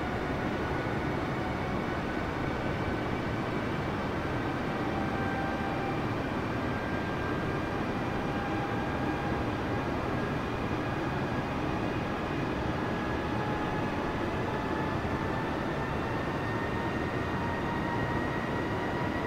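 A jet engine roars steadily, with a slowly rising whine.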